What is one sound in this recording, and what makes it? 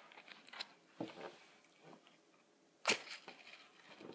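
Playing cards rustle and flick in a hand.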